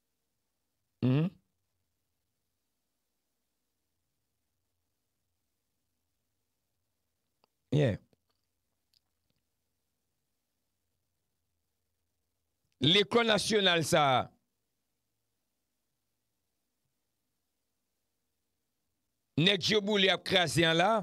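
A man speaks close into a microphone in short bursts, with long pauses between them.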